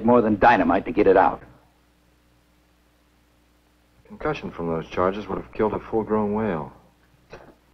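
A man speaks calmly on an old mono film soundtrack.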